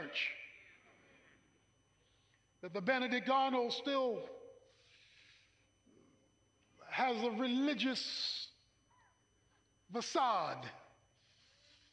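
A middle-aged man speaks with animation in short bursts through a microphone.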